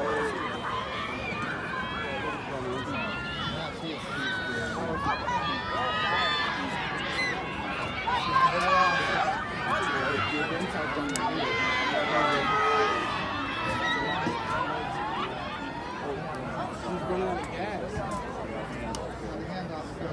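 Many young people chatter and call out at once, outdoors.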